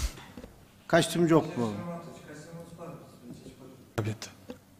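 A young man answers calmly through a microphone.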